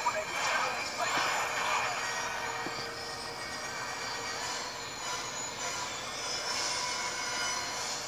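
A video game engine hums steadily as a vehicle speeds along.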